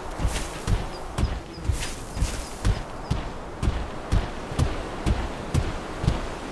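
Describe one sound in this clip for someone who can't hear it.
Heavy footsteps of a running creature thud rhythmically on the ground.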